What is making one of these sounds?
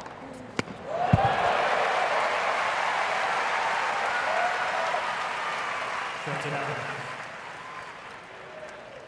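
A large crowd cheers and applauds loudly, then fades.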